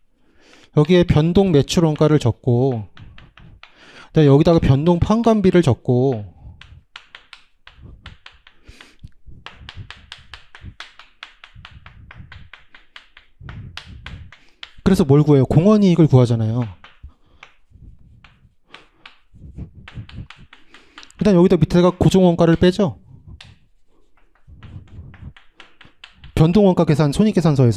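A young man lectures with animation through a close microphone, in bursts with pauses.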